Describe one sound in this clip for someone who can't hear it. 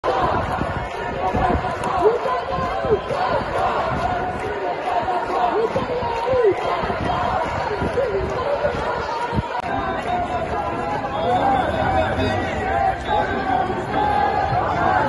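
A large crowd chants and shouts together outdoors.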